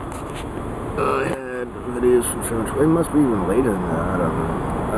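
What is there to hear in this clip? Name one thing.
A middle-aged man talks casually close to the microphone.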